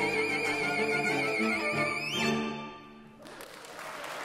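A string ensemble plays a final chord and falls silent.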